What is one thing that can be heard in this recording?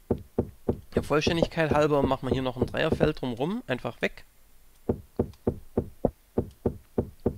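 A pickaxe chips at stone with quick, steady knocks.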